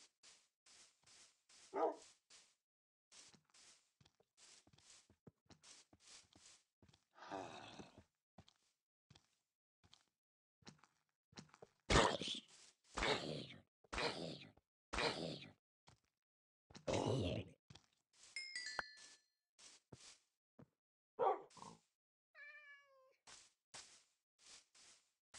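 Footsteps crunch steadily on grass and dirt.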